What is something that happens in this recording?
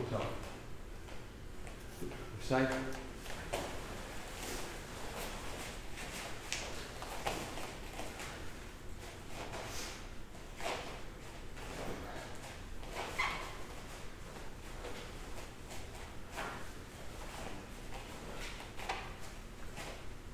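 Stiff cloth uniforms snap and swish as several people kick.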